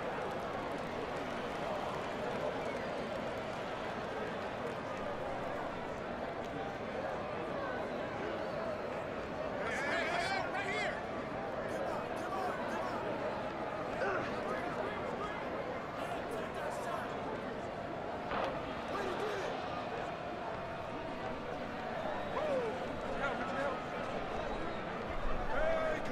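A crowd murmurs steadily outdoors.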